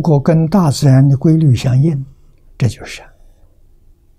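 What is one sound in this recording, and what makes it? An elderly man speaks calmly and slowly into a close microphone.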